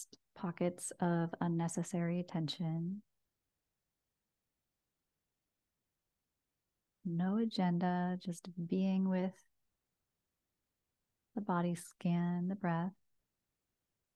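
A woman speaks slowly and softly into a close microphone, with long pauses.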